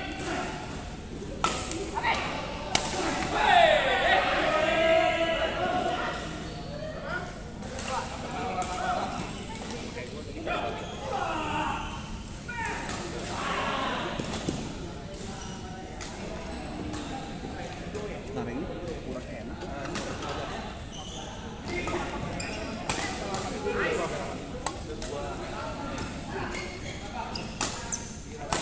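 Badminton rackets hit a shuttlecock with sharp smacks in a large echoing hall.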